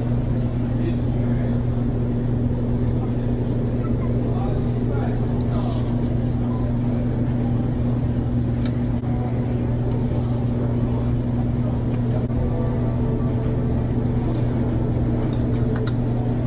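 A spoon scrapes and clinks against a bowl.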